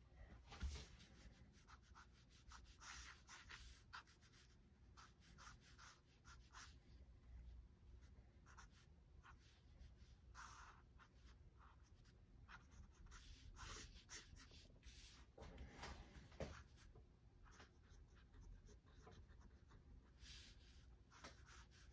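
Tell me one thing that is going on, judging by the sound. A pen scratches and scrapes across paper in short strokes.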